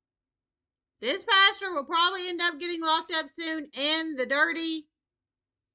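A young child talks in a high, lively voice close by.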